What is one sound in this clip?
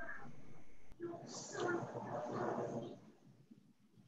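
A woman speaks quietly through an online call.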